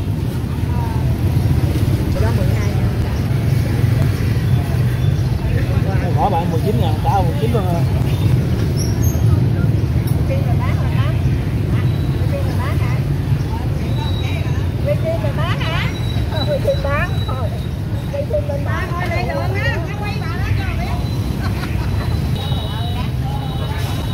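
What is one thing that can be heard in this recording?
A woman talks nearby with animation.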